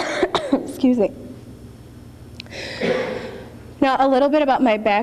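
A young woman speaks with emotion into a microphone, heard through loudspeakers in an echoing hall.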